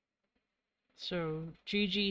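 A plastic marker cap is pulled off with a squeak.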